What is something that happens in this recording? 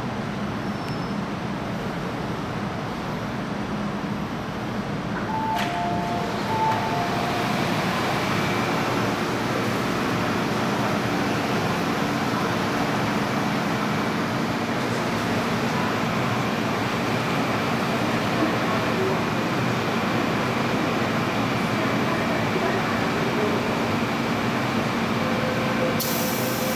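A subway train rumbles and hums steadily.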